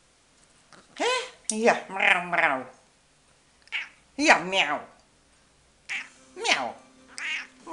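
A cat meows loudly and repeatedly up close.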